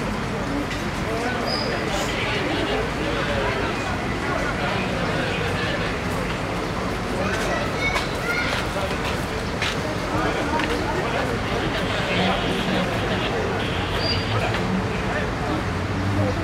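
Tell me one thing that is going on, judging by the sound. Men and women talk in a murmur nearby outdoors.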